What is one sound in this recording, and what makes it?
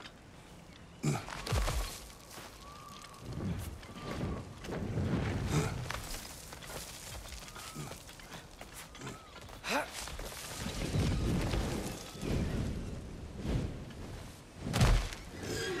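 An armoured figure scrapes and thuds while climbing a rock face.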